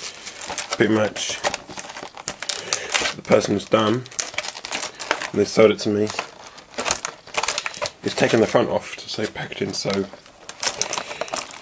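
Hard plastic packaging clicks and rattles as it is handled.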